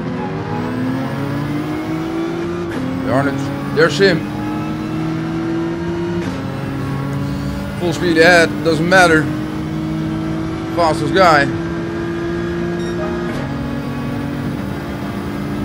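A racing car engine drones steadily and shifts gears as it speeds up.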